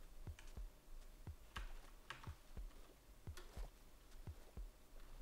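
Footsteps tap steadily across ice in a quick, even rhythm.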